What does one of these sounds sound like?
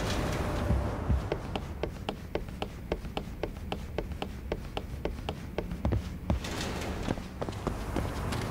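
Footsteps run quickly across a wooden floor.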